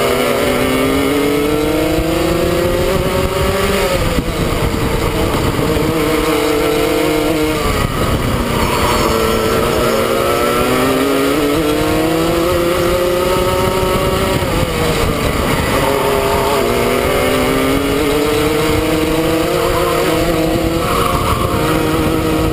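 A kart engine buzzes loudly up close, its pitch rising as it speeds up and dropping when it slows for corners.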